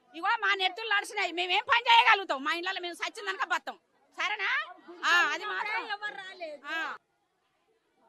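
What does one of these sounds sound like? A woman speaks loudly and with agitation close by.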